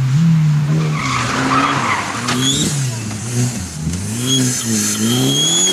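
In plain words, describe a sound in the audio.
Gravel and dirt spray against the ground as a car slides.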